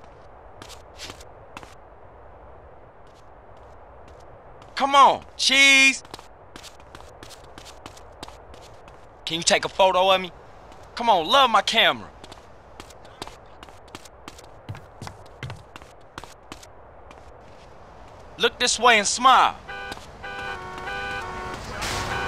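Footsteps run on paving.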